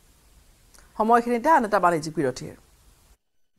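A woman speaks clearly into a microphone as a news presenter.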